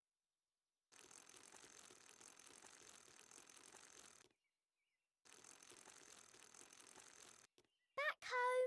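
A small bicycle rattles and clicks as it rolls along.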